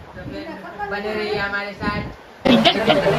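An elderly woman speaks nearby.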